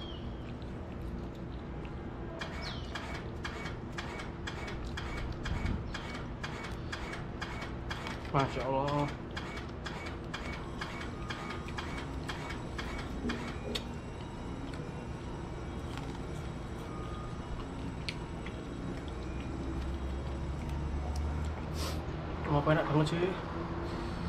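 A young man chews food noisily close by.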